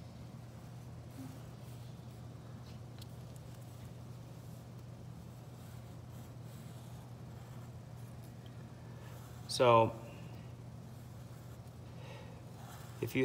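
A felt-tip marker squeaks faintly as it draws on paper.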